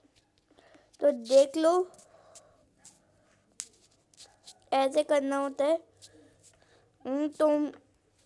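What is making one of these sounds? A young child speaks excitedly close to the microphone, in short bursts.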